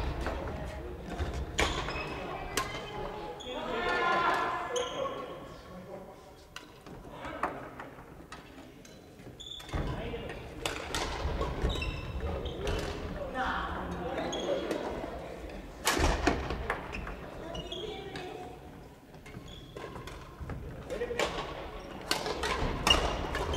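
Young men and women call out and chat in the echoing hall.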